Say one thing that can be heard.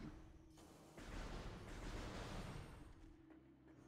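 A blaster fires with a short whooshing burst.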